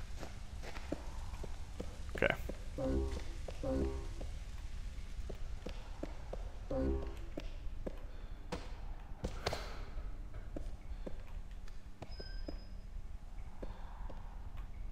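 Footsteps tread on a hard floor.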